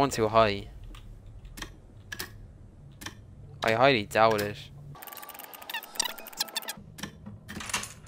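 Dials on a combination lock click as they are turned.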